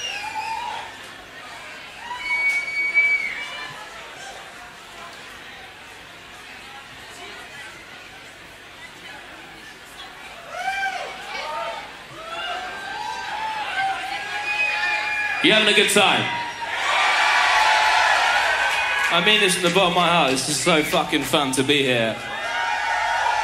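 A large crowd cheers and screams in an echoing hall.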